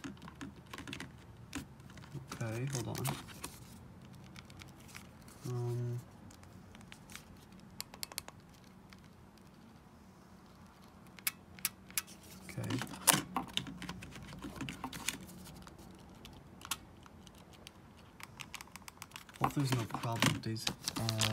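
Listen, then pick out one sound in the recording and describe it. Plastic game controllers click and rattle as hands lift them out of a box.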